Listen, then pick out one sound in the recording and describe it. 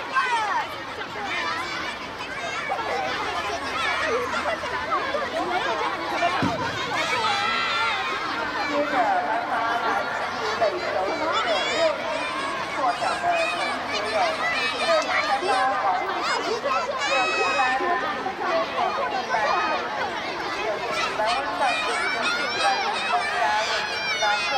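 A crowd of children cheer and shout outdoors.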